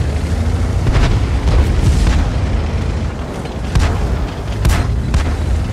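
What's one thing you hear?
A tank cannon fires with sharp booms.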